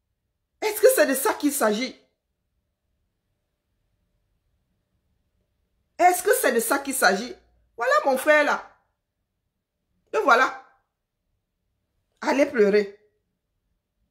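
A woman speaks with animation close to the microphone, in short bursts.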